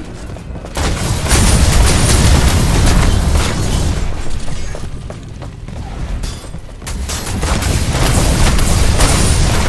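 Weapons clash and blasts burst in a loud fight.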